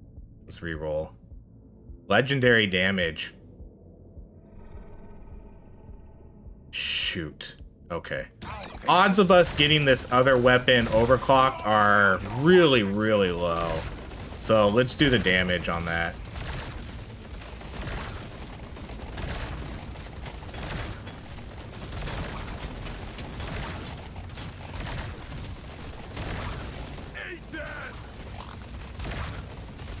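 Laser weapons zap and crackle rapidly.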